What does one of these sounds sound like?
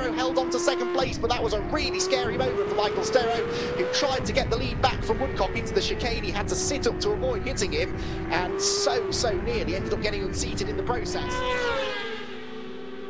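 A motorcycle engine roars up close, revving rapidly up and down.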